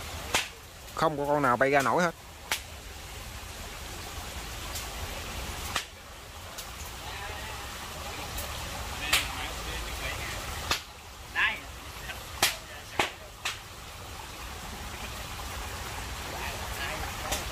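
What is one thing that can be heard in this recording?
Dry leaves rustle as a man pushes through undergrowth.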